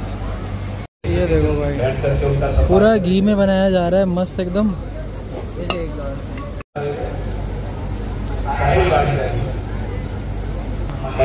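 Oil sizzles and bubbles in a hot pan.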